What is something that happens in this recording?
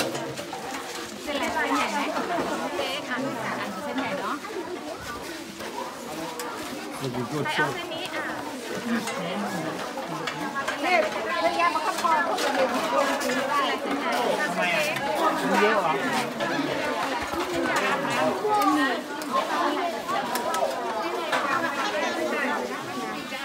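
Many children chatter and call out nearby, outdoors.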